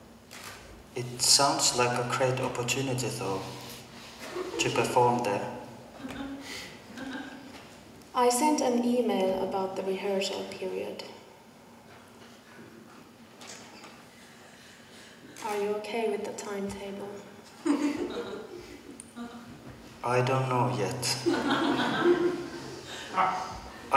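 Young girls speak clearly and theatrically in a large hall, taking turns.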